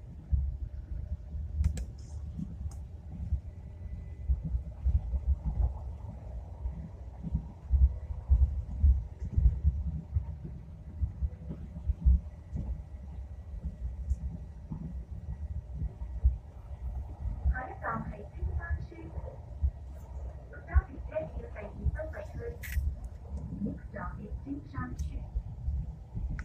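A light rail train rumbles steadily along the tracks.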